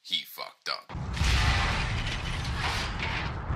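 A bomb explodes with a heavy blast.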